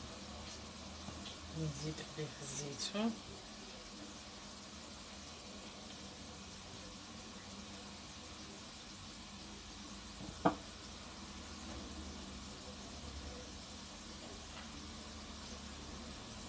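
Hands softly scatter toppings onto pizza dough.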